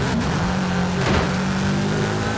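A car scrapes against a wall with a sudden crash.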